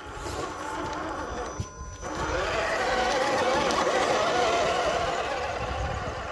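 Plastic tyres crunch over twigs and dry leaves.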